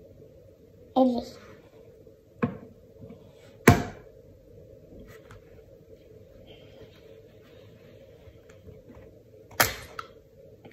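An egg is tapped sharply against a container.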